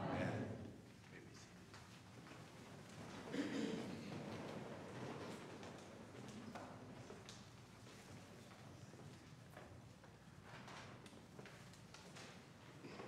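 A congregation murmurs and shuffles softly in a large hall.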